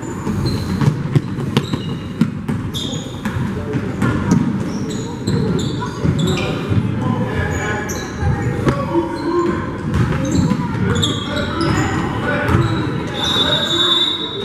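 Players and spectators shout and call out in a large echoing gym.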